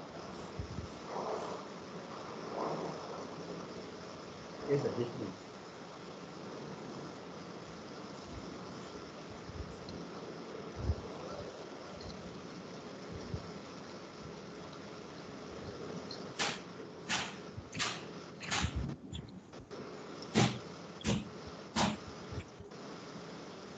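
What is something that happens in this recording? A man speaks quietly over an online call, with pauses.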